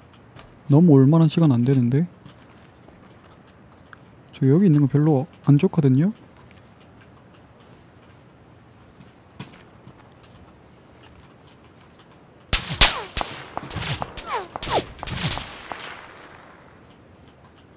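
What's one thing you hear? Footsteps thud quickly on grass as someone runs.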